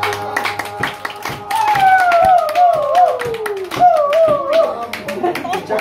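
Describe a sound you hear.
Several people clap their hands in a quick, steady rhythm.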